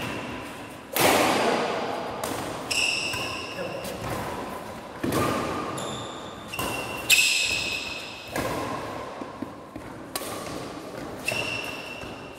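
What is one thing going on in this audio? Rackets strike a shuttlecock with sharp smacks that echo around a large hall.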